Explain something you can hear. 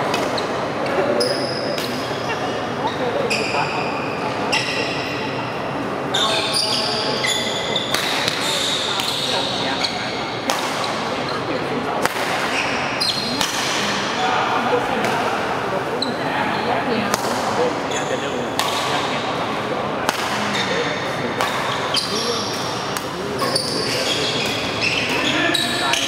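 Rackets strike a shuttlecock back and forth in an echoing hall.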